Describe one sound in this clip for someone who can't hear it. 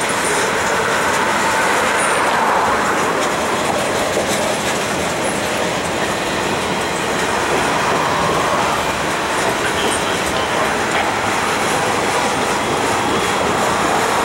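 Steel wheels squeal and click over rail joints.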